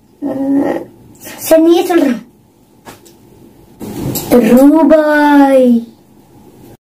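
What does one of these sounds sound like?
A young boy speaks loudly and clearly in long, drawn-out words close by.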